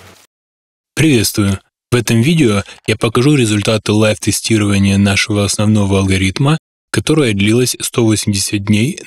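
A man speaks steadily and close to a microphone.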